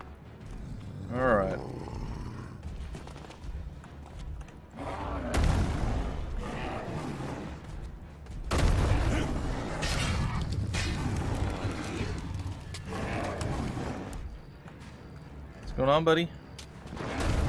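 A huge creature lets out deep, growling roars.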